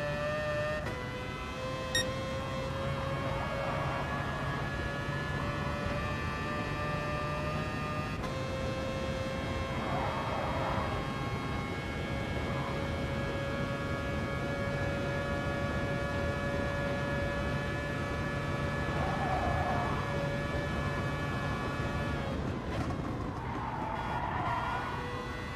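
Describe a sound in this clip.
A racing car engine roars at high revs, climbing steadily in pitch between quick gear changes.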